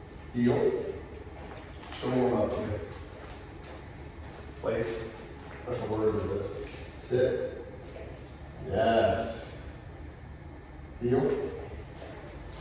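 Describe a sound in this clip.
A man gives short commands to a dog in a calm, firm voice, in a room with some echo.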